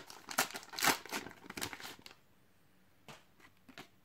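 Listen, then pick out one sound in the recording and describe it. Cards rustle and slide against each other.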